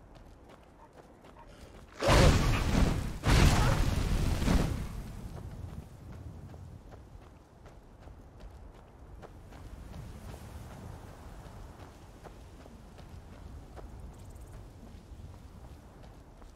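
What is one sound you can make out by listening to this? Footsteps crunch steadily over dirt and grass.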